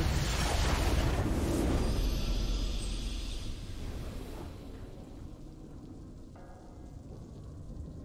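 A triumphant fanfare swells and fades.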